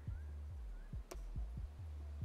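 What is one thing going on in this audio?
A short click sounds as a menu option is chosen.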